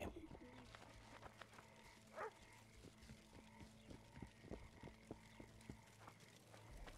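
Footsteps crunch steadily along a stone path.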